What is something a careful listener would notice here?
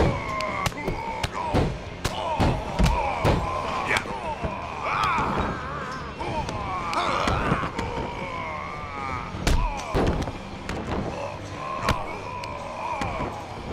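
Fists and kicks land with sharp smacks.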